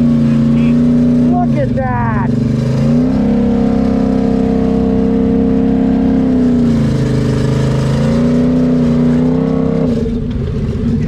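An engine revs and strains loudly, rising and falling.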